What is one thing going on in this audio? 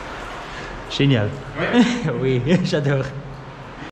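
A man speaks nearby in an echoing tunnel.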